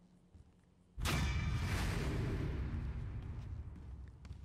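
A triumphant burst of game music plays loudly and slowly fades.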